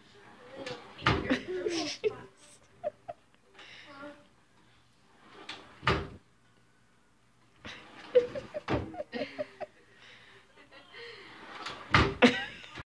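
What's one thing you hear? A wooden drawer bangs shut and slides open again and again.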